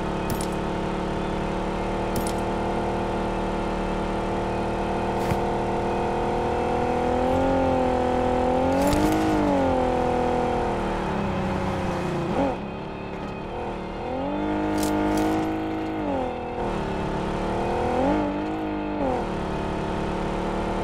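A car engine hums steadily and revs up and down.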